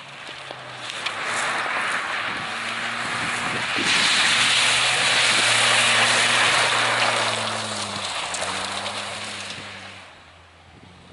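Tyres spray and crunch over wet gravel.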